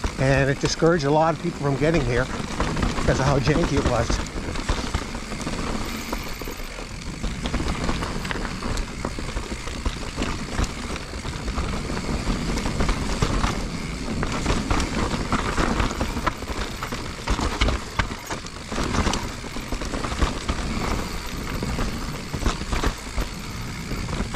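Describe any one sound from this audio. Bike tyres crunch and rumble over a dirt trail.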